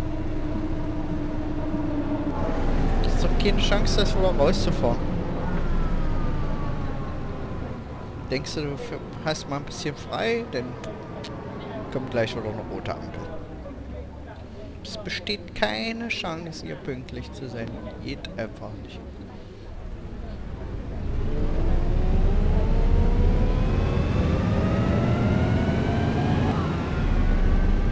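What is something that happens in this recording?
A bus engine drones steadily, dropping as the bus slows and rising again as it speeds up.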